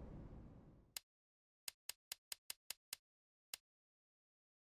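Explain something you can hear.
A menu clicks softly several times in quick succession.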